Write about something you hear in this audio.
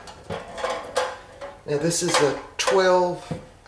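A metal baking pan slides across a glass stovetop.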